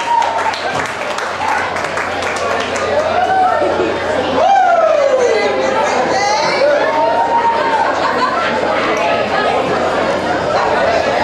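A rock band plays loudly through amplifiers in an echoing hall.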